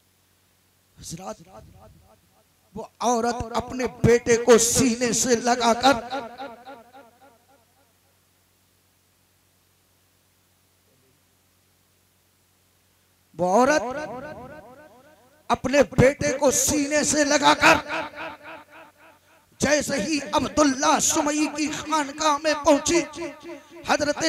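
A man speaks with animation into a microphone, loud and close, with long pauses.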